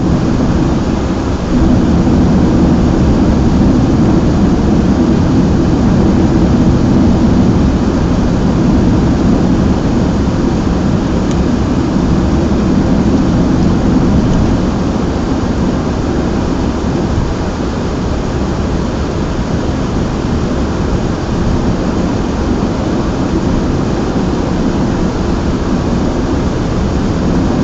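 Tyres roar steadily on the road.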